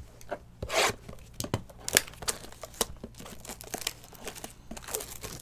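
Plastic wrapping crinkles and rustles under handling fingers.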